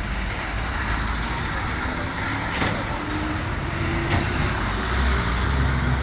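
A bus roars by close up.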